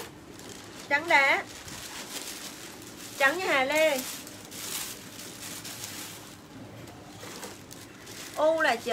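Fabric rustles as a garment is handled.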